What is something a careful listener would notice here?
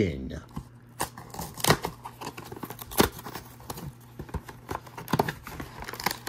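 A cardboard box crinkles and taps as hands open it.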